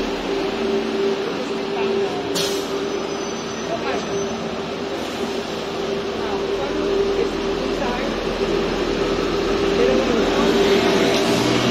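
A bus engine idles with a steady hum nearby.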